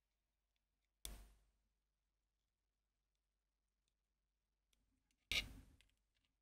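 A small screwdriver clicks faintly against a tiny screw.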